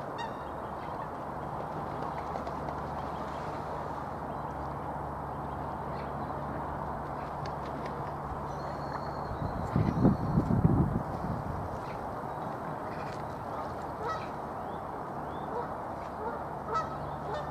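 Water laps gently against the shore.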